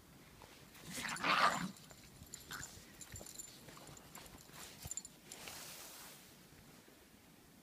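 Dogs' paws crunch and scuffle through snow.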